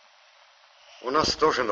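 A man speaks in a low voice nearby.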